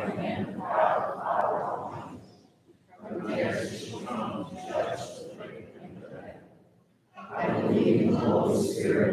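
A congregation recites together in unison.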